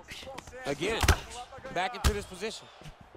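Punches and kicks thud heavily against bodies.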